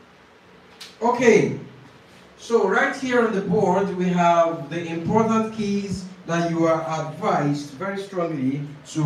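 A young man speaks clearly into a close microphone.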